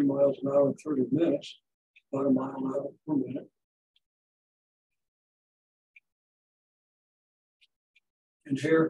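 A man lectures in a calm, clear voice close by.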